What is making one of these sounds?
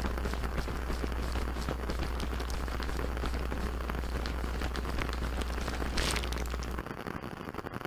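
A plastic bag full of beads crinkles and rustles.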